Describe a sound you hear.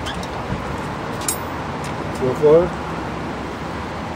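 A metal hatch clicks open.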